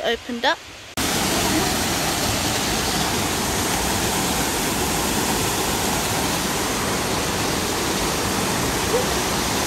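A waterfall roars and splashes loudly over rocks.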